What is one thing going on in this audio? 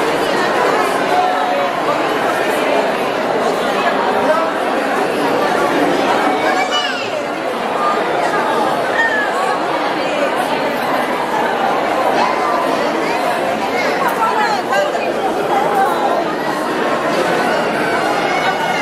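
A large crowd of men and women chatters loudly all at once in an echoing hall.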